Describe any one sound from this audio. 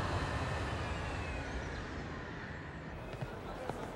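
A jet engine roars as a plane taxis past.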